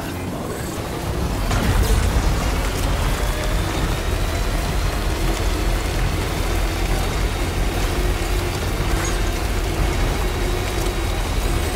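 Tyres crunch and bump over a rocky dirt track.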